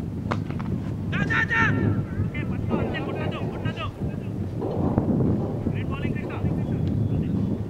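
Men shout and call out across an open field.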